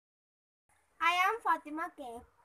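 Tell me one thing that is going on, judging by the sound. A girl speaks clearly and close by.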